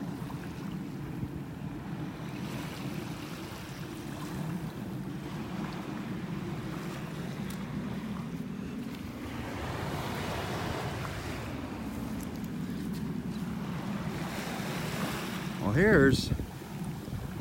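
Small waves lap gently at the shore.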